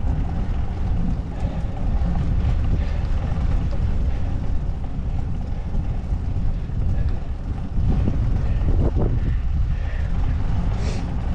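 Tyres hum softly on smooth asphalt.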